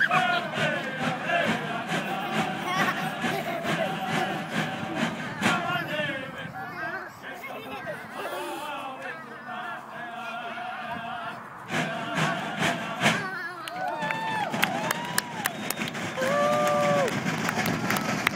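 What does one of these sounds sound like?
A group of people sing together outdoors.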